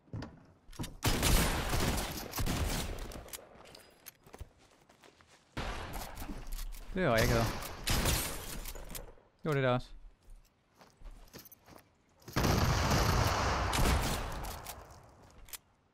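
Shotgun blasts go off in loud, sharp bursts.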